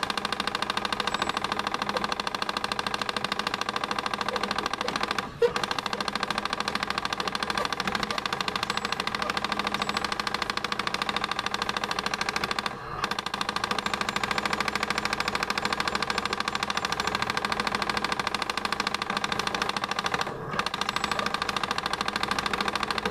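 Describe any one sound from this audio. Upbeat electronic music plays from an arcade game.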